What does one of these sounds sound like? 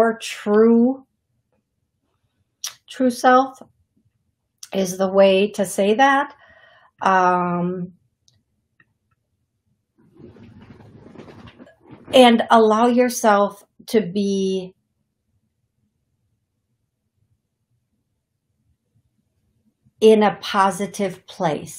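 A woman speaks calmly and expressively into a close microphone, with pauses.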